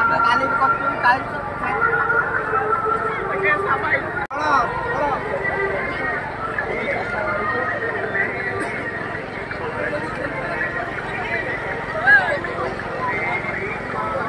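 A large outdoor crowd chatters.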